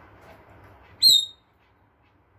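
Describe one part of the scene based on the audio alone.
A parrot gives a sharp, high whistle.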